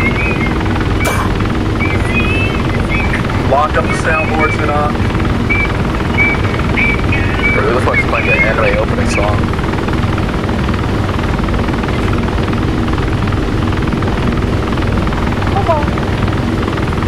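A helicopter engine drones steadily with a deep rumble.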